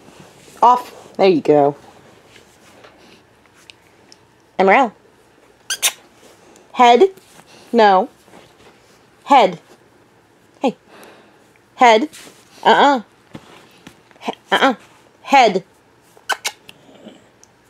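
A dog whines in short, high, wavering cries close by.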